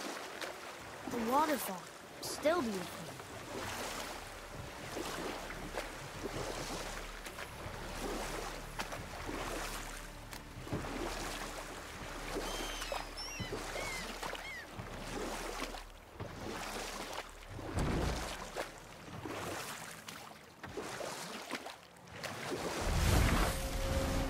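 Oars splash and paddle through water.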